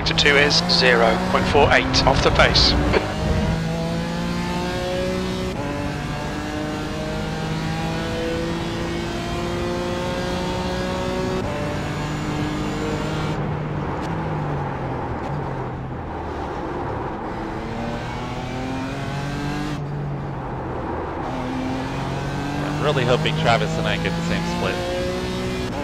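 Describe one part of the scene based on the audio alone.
A racing car engine roars steadily, rising and falling in pitch through the gears.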